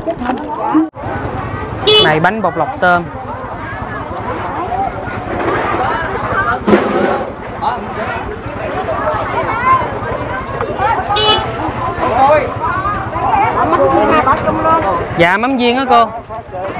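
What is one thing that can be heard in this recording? Several women chatter nearby.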